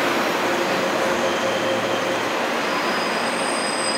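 A train rolls past close by.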